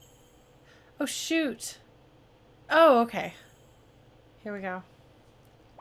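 A young woman speaks with animation into a close microphone, her voice swooping up and down.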